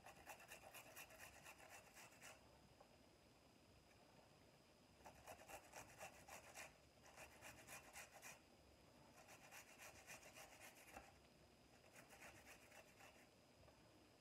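A knife chops quickly through an onion on a cutting board.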